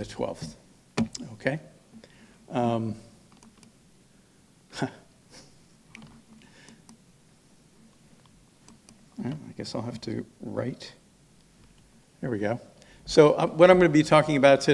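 A middle-aged man speaks calmly into a microphone, with pauses, in a large echoing hall.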